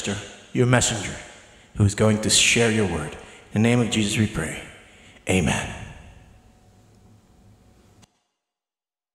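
A man sings closely into a microphone, holding long notes with a lingering echo.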